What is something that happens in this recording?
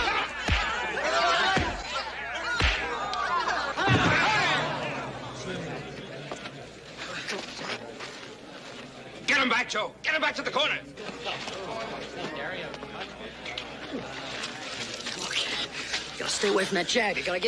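A crowd of men shouts and cheers loudly.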